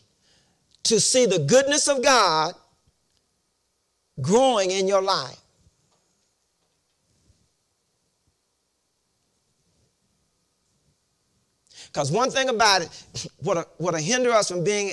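A man preaches with animation into a microphone, in bursts with pauses between.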